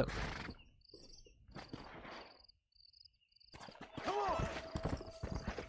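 A horse's hooves thud on grassy ground.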